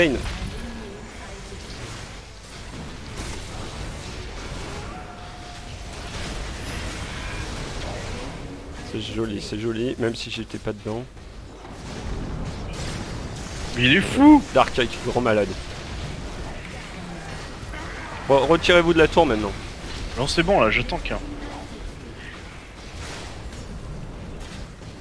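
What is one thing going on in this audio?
Magic blasts and clashing blows crackle through a busy video game battle.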